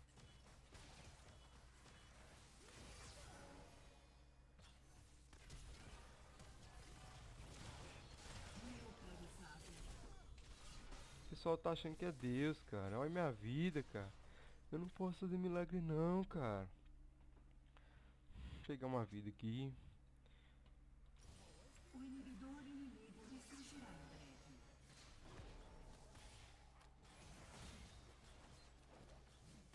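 Fantasy game spell effects whoosh and crackle during a battle.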